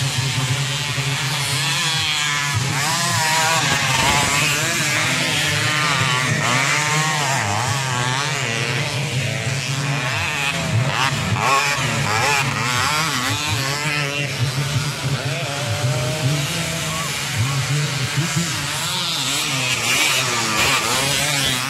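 A dirt bike engine revs loudly as it rides over sand.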